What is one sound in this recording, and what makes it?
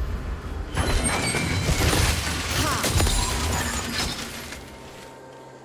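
Video game spell blasts and impacts crackle during a fight.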